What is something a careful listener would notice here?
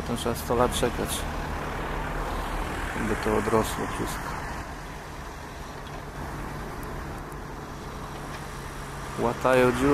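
A crane loading logs onto a truck knocks and clatters in the distance.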